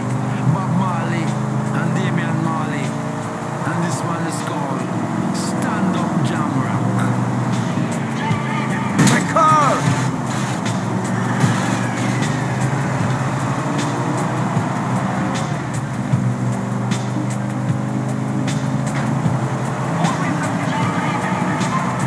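A car engine hums steadily as a car drives along a road.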